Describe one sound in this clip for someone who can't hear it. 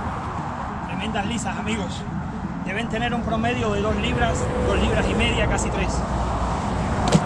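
A man talks close by, outdoors.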